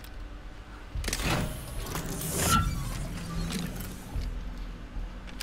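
A machine hisses and whirs.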